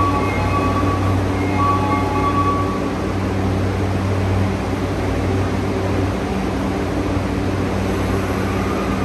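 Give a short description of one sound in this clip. A standing train hums low and steadily in an echoing underground station.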